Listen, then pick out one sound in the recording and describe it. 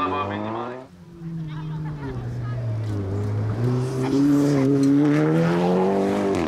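A second racing car engine approaches and revs hard.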